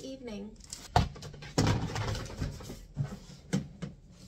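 A plastic storage bin knocks and scrapes.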